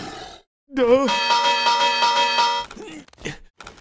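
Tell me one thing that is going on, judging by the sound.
A bell rings with a clear, lingering tone.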